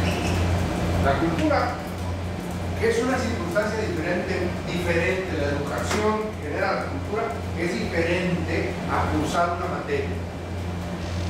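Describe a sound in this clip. A middle-aged man talks with animation to a room, close by and slightly echoing.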